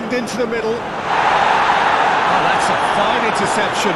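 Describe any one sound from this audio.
A stadium crowd swells into a loud cheer.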